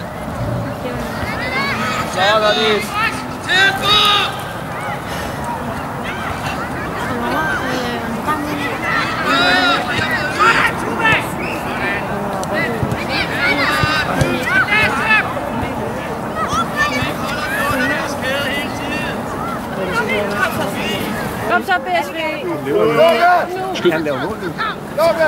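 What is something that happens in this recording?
Young players shout to each other across an open pitch outdoors.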